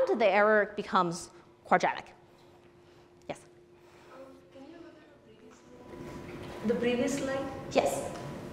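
A young woman speaks calmly into a clip-on microphone.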